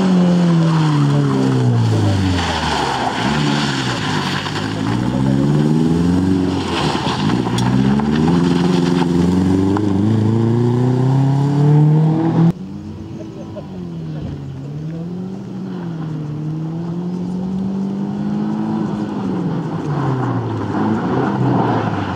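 Tyres screech and scrub on rough tarmac.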